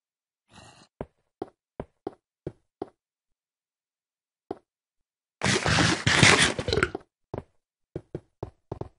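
Footsteps tap on stone in short, even steps.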